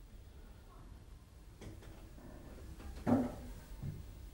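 A man shifts and sits up on a creaking sofa.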